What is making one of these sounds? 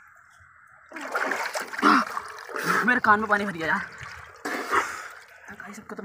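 Water splashes in a barrel.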